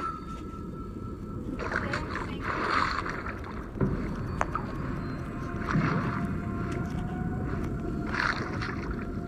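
Low, muffled underwater music rumbles steadily.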